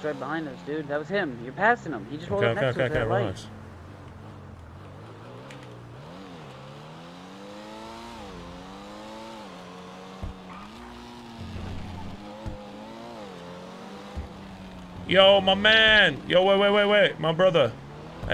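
A car engine revs hard and roars, rising and falling in pitch.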